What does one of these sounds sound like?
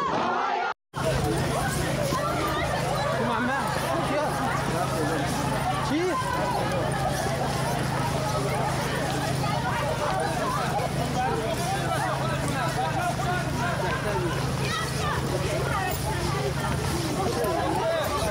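A crowd shouts and clamours outdoors.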